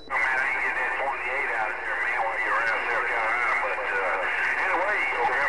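A radio plays a warbling, crackling transmission through its small speaker.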